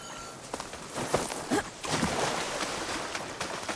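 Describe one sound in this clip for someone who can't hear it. Water splashes underfoot as someone wades through a shallow pool.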